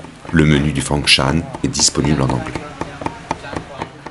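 A cleaver knocks on a wooden chopping block.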